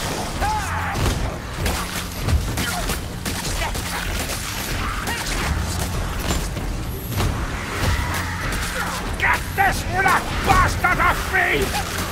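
A gun fires in loud blasts.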